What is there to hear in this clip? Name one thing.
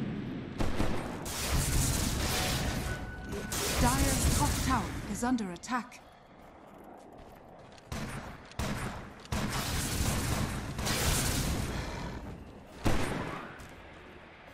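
Spell blasts and clashing weapons crackle and boom in a battle.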